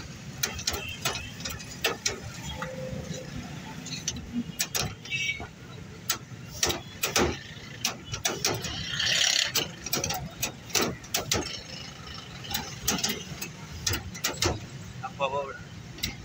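A hand-lever potato cutter thumps and clanks as it presses potatoes through a blade grid.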